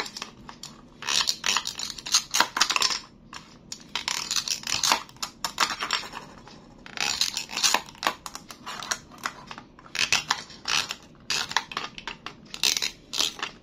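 Velcro rasps as toy pieces are pulled apart.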